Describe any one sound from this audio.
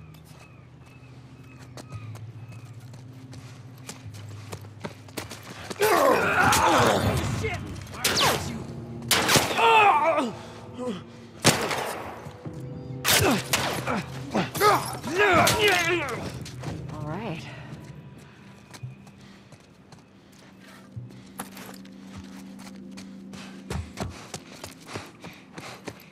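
Footsteps run over a hard floor.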